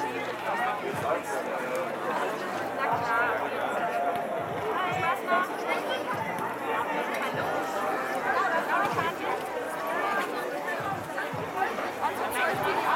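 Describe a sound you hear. A crowd of children and adults chatter nearby outdoors.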